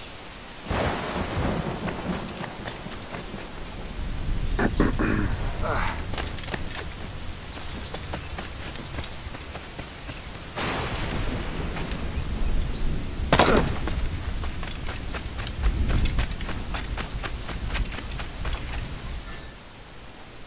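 Footsteps run over rocky ground and sand.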